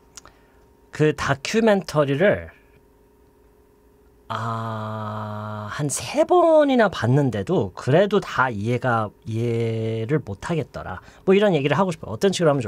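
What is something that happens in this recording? A middle-aged man speaks with animation into a close microphone, pausing between remarks.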